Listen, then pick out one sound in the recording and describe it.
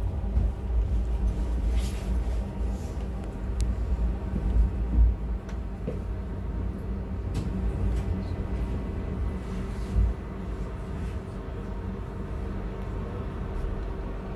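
Rain patters on the windscreen.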